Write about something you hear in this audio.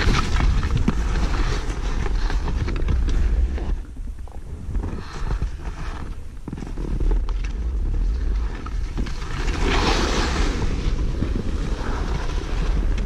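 Skis scrape and hiss over snow.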